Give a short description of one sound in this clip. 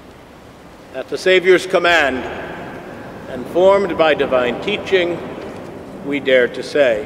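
An elderly man speaks slowly into a microphone in an echoing hall.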